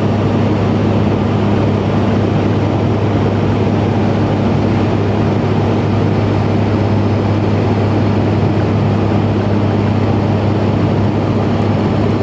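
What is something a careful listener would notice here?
Air rushes steadily past an aircraft.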